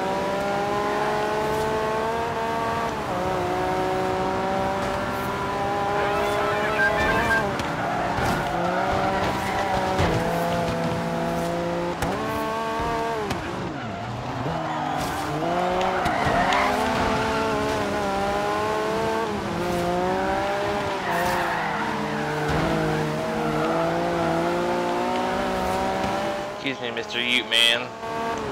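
A car engine revs loudly, rising and falling through the gears.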